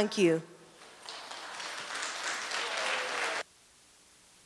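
A small audience applauds.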